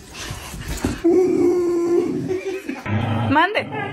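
A dog howls loudly and close by.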